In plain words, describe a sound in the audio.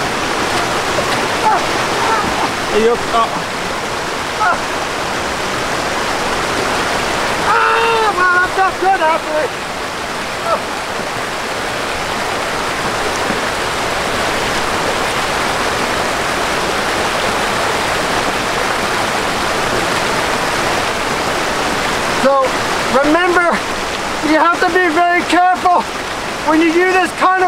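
A mountain stream rushes and splashes over rocks close by.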